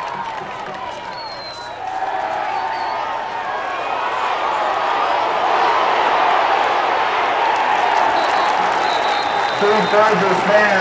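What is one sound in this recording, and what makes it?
A crowd cheers loudly outdoors, swelling as the play goes on.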